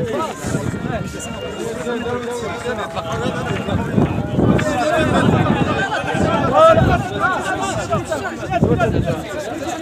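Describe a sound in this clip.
Hands slap together as players shake hands.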